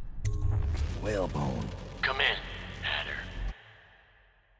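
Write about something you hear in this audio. A man speaks through an intercom speaker.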